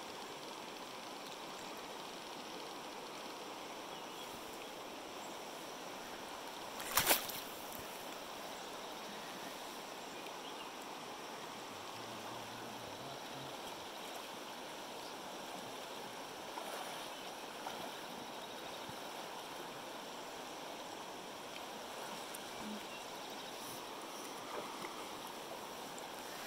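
A river rushes and gurgles steadily over rocks.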